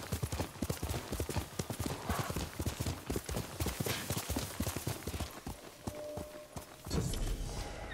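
A horse gallops over grass, hooves thudding.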